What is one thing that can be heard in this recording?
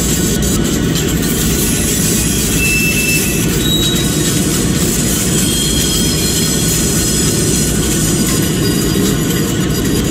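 A diesel locomotive engine rumbles steadily as the train rolls slowly.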